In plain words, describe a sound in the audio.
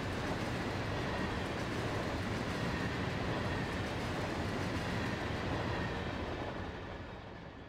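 A freight train rumbles and clatters past close by, then fades away.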